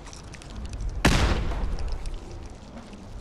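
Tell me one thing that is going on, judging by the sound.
A grenade explodes with a loud boom that rumbles away.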